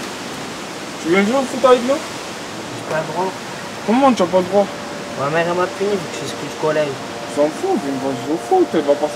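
Young men talk at close range.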